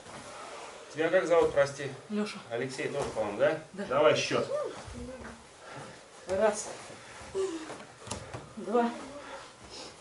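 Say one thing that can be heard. A man talks with pauses.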